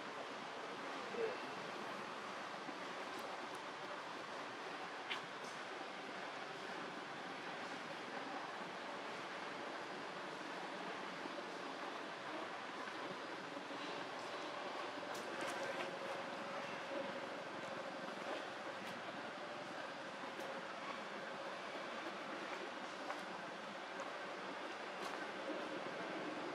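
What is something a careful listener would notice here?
Monkeys rustle softly as they groom each other.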